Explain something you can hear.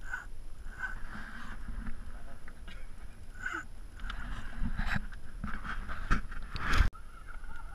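A fishing reel whirs and clicks as line is wound in.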